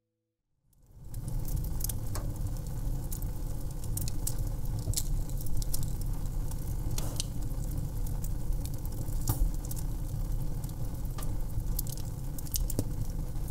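Flames roar low and steadily.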